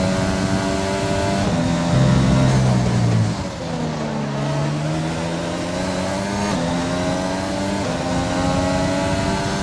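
A racing car engine screams at high revs, dropping in pitch as it shifts down for a corner and climbing again as it speeds away.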